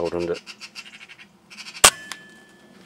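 A bird chirps in quick repeated notes.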